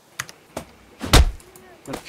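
A rock thuds heavily as it strikes a cow.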